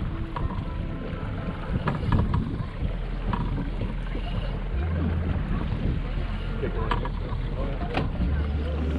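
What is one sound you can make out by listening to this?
Waves slap against a small boat's hull.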